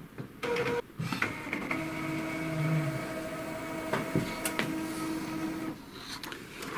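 A printer whirs and hums steadily as it feeds and prints a page.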